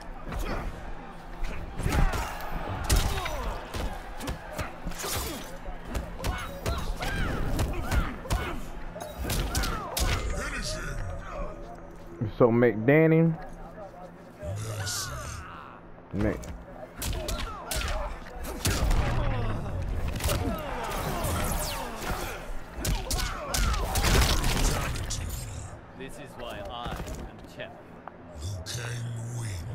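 Punches and kicks land with sharp thuds in a fighting game.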